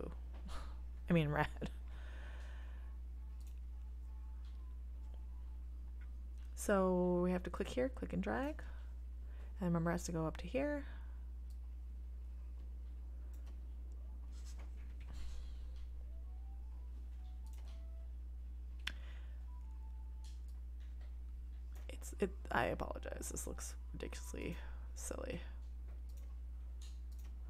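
A mouse clicks now and then.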